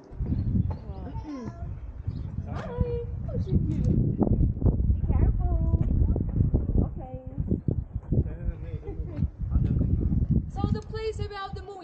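Adults talk nearby in the open air.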